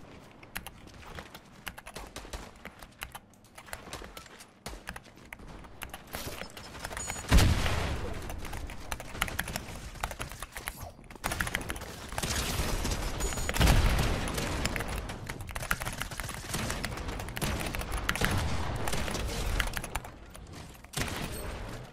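Video game building and hitting sounds clatter in quick bursts.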